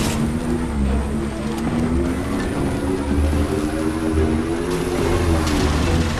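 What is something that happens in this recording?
A hovering vehicle's engine hums steadily, its pitch rising and falling slightly.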